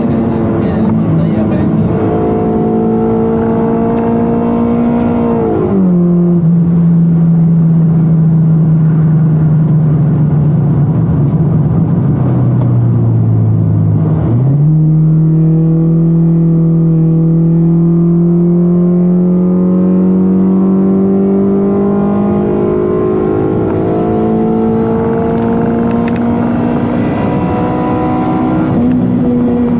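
A car engine drones loudly from inside the car, rising in pitch as it speeds up and dropping sharply at each gear change.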